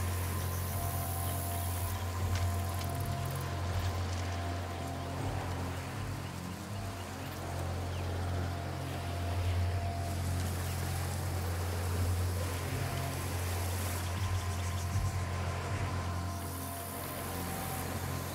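Dry stalks rustle softly as someone creeps through them.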